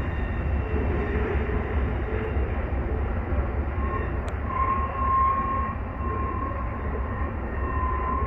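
A freight train rumbles steadily along the tracks in the distance.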